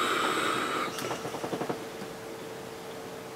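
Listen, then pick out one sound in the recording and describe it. A man exhales a long breath of vapour.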